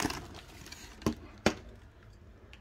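A plastic toy knocks down onto a hard surface.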